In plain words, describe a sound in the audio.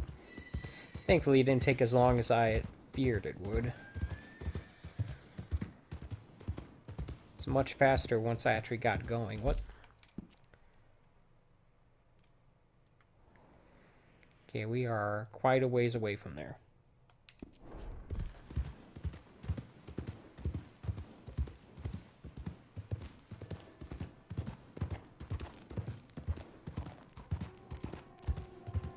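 A horse gallops, its hooves thudding steadily on a dirt track.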